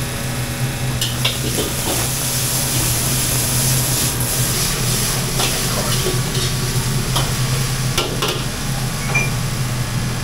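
A metal ladle scrapes and clanks against a wok.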